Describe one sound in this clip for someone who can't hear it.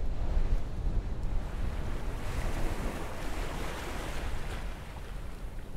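Surf washes and churns.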